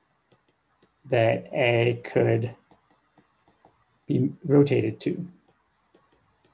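A young man speaks calmly into a close microphone, explaining at a measured pace.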